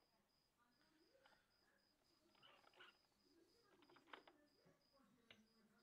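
A pastel stick scratches softly across paper.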